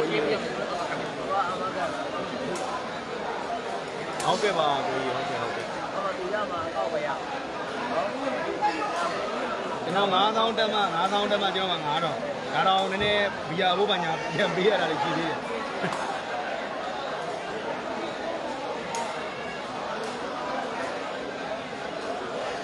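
A large crowd of young men chatters and calls out all around in a big echoing hall.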